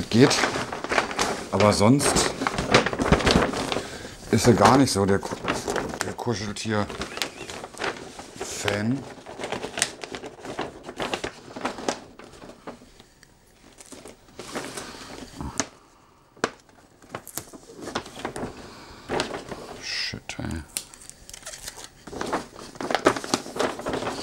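Wrapping paper crinkles and rustles as it is handled.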